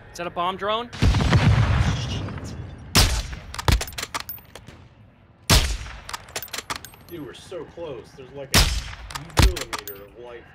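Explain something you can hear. A sniper rifle fires loud, booming shots.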